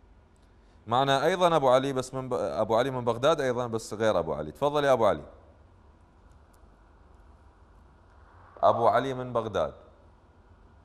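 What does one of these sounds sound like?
A young man speaks calmly and clearly into a microphone.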